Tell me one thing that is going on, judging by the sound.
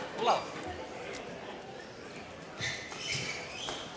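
A racket strikes a shuttlecock with sharp pops in a large echoing hall.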